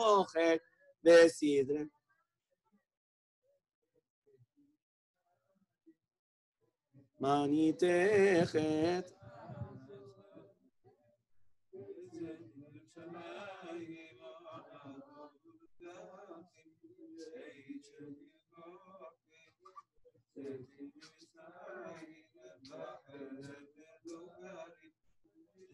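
A man chants prayers aloud into a microphone, with a sung lilt.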